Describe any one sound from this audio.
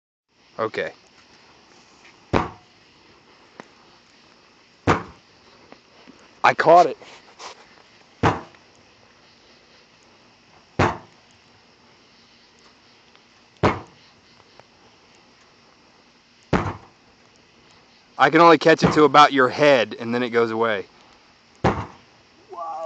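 A stick beats down into a fire with sharp thuds.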